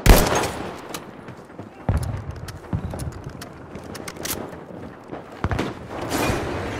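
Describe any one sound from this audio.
Loud rifle shots boom with a ringing echo.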